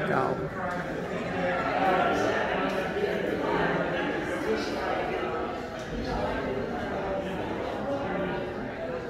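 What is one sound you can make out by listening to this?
Many men and women chatter and murmur nearby in a large, echoing hall.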